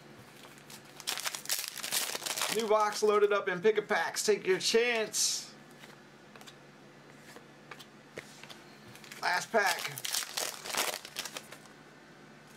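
A foil wrapper crinkles and rustles close by.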